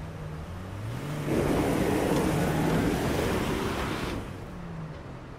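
A car drives past on the road, with its tyres rushing.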